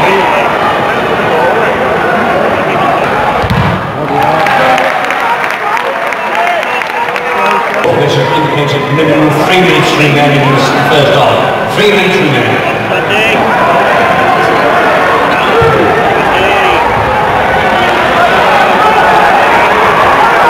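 A stadium crowd murmurs and chatters all around, outdoors.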